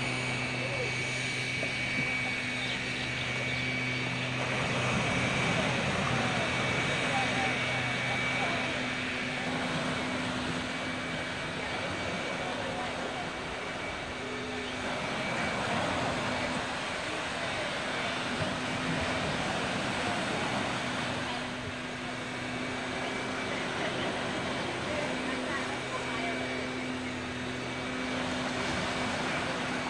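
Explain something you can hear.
Small waves wash onto the shore and break.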